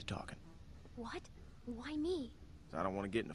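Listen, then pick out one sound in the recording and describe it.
A young girl asks a question in surprise.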